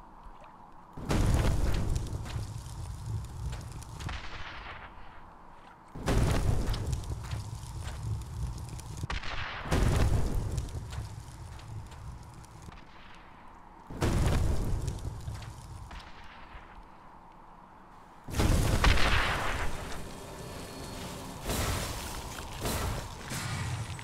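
Fiery blasts burst again and again with deep, booming roars.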